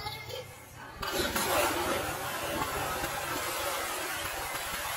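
Water sloshes and laps in a pool.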